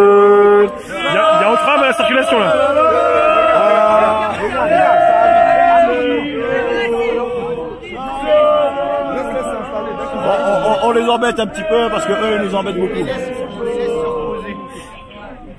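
A man talks with animation right beside the microphone.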